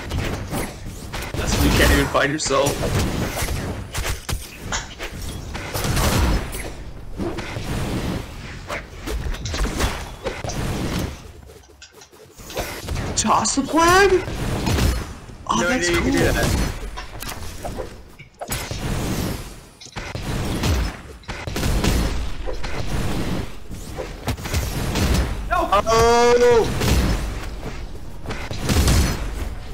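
Video game sound effects of hits, swooshes and blasts clash rapidly.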